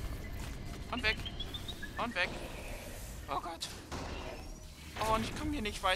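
Sharp electronic zaps and buzzes crackle.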